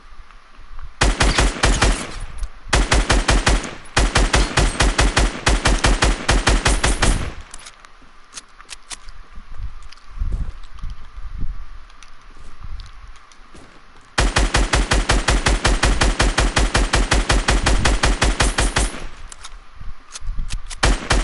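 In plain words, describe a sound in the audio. Rapid gunshots fire in long, fast bursts.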